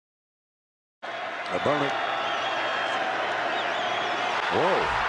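A large stadium crowd murmurs and cheers outdoors.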